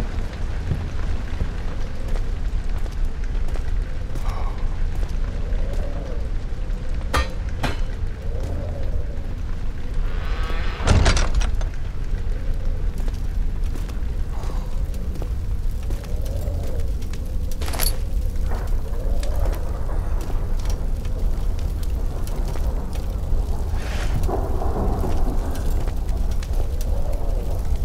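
Footsteps fall steadily on a stone floor.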